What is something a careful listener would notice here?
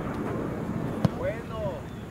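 A soccer ball thumps as a player kicks it.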